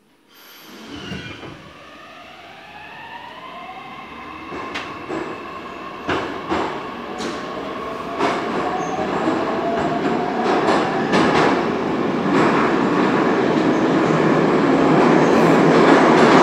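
A subway train's motors whine, rising in pitch as the train speeds up.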